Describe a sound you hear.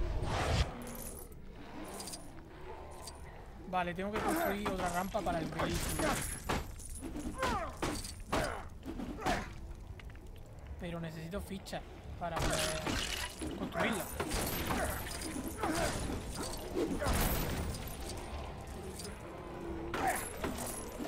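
Game objects smash and clatter with sharp crashes.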